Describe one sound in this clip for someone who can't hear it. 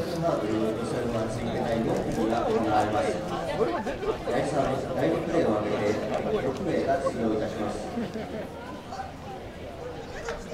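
A crowd of people chatters outdoors at a distance.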